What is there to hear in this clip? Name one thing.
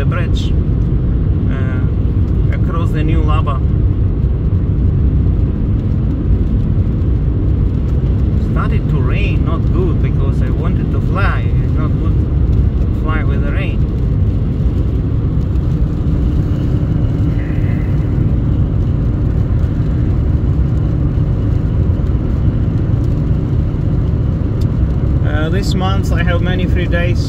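A car engine and tyres rumble steadily on a wet road.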